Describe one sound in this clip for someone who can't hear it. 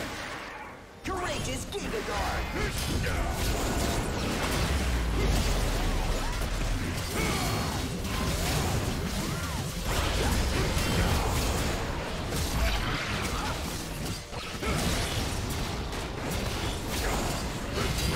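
Spell blasts and weapon hits crackle and thud in a game fight.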